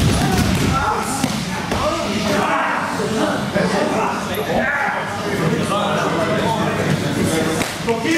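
Bodies thud and scuffle on floor mats.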